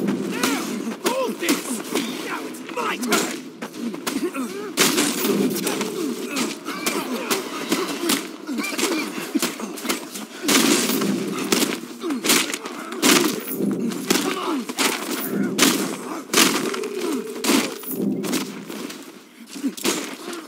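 Heavy punches and kicks land with sharp thuds, again and again.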